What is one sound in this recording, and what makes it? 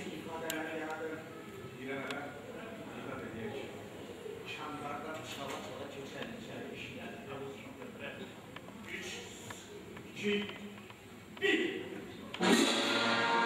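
A man speaks loudly on a stage in a large hall.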